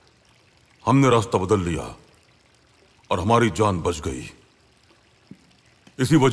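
A man speaks in a deep, calm voice close by.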